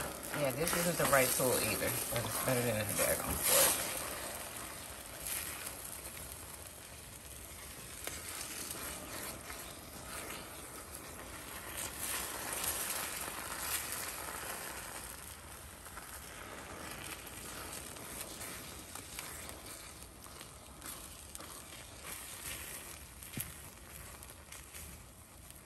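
A spatula scrapes and stirs in a frying pan.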